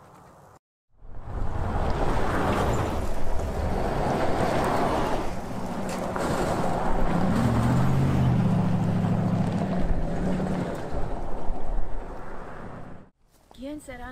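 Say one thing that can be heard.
A car drives by on a gravel road.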